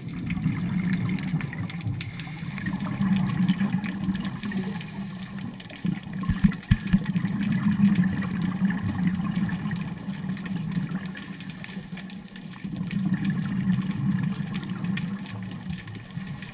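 Exhaled bubbles burble and rumble from a scuba diver's regulator underwater.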